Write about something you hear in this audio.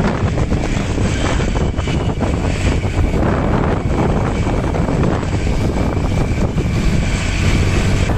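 A motorcycle engine hums nearby.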